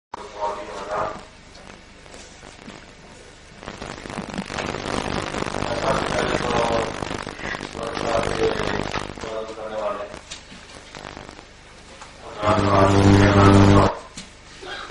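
An elderly man speaks into a microphone, heard through a loudspeaker in an echoing hall.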